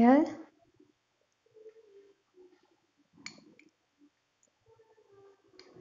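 A spoon clinks lightly against a glass dish.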